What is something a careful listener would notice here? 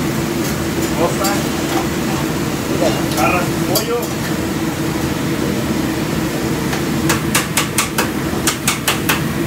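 Meat sizzles loudly on a hot griddle.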